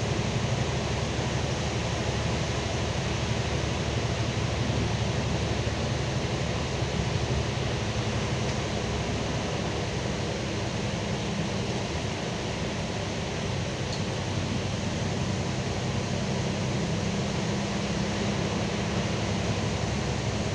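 Tyres hiss on a wet, slushy road.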